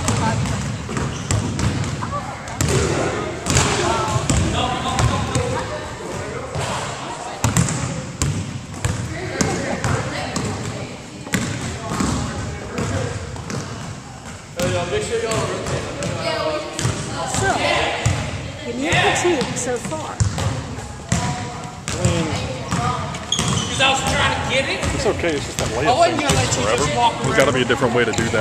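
Young men and women call out and chatter across an echoing gym.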